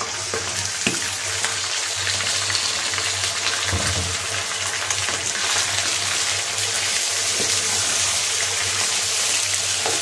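Chicken sizzles and crackles in hot oil.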